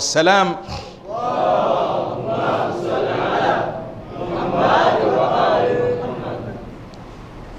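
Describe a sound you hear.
A man chants in a drawn-out, melodic voice through a microphone.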